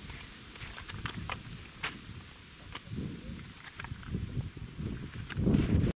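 Metal parts of a rifle click and clack as they are handled.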